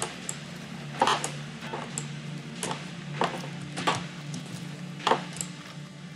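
Sharp thuds knock at uneven intervals.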